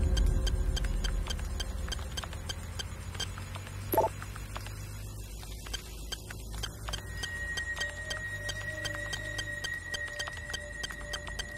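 Quick electronic clicks tick repeatedly as digits are dialled.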